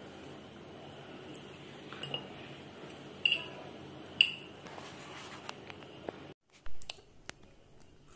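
A fork clinks against a ceramic bowl.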